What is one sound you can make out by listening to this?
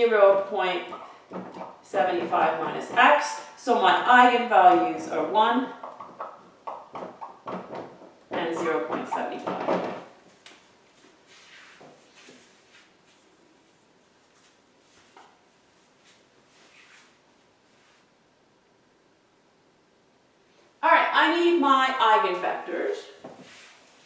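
A young woman talks calmly, as if explaining.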